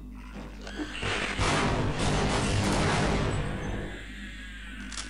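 A loud blast roars.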